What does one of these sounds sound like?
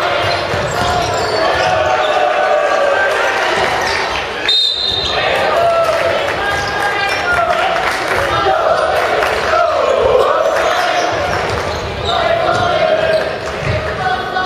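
Basketball shoes squeak on a wooden court.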